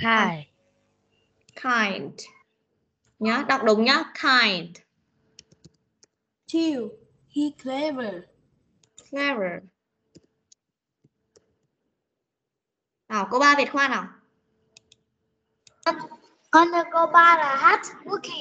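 A woman speaks clearly and with animation over an online call.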